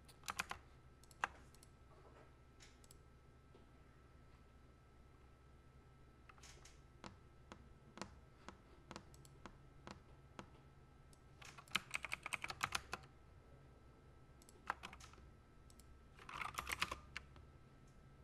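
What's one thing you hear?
Keys on a mechanical keyboard click and clack in quick bursts, close by.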